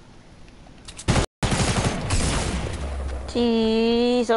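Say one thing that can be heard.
Gunshots crack loudly in a game.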